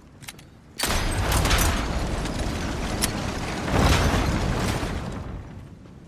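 A heavy mechanism rumbles and grinds.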